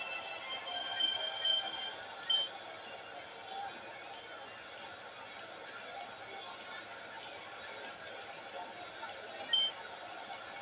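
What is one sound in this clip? Short high electronic beeps sound as a game menu cursor moves.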